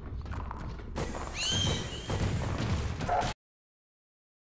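A blaster fires in rapid bursts.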